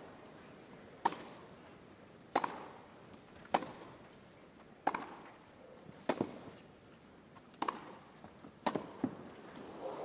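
Rackets strike a tennis ball back and forth in sharp, even pops.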